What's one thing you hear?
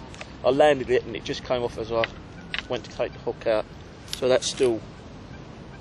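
A fishing rod and reel rattle as they are handled.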